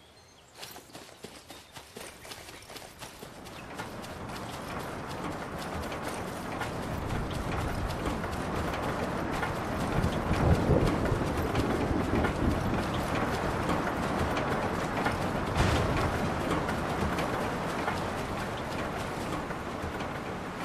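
Footsteps run on a dirt path.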